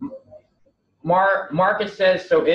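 A second man speaks up loudly and quickly through an online call.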